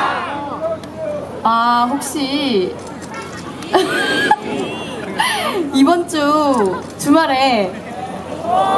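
A young woman speaks brightly into a microphone, heard through loudspeakers.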